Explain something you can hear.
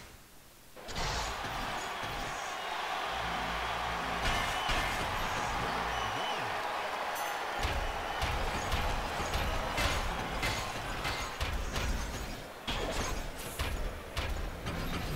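A crowd roars and cheers in a large echoing arena.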